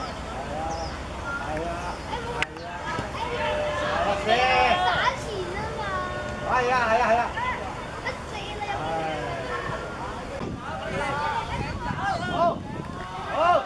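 Boys shout and call out across an open field.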